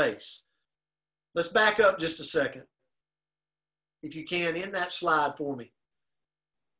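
A middle-aged man speaks calmly through an online call, in short bursts.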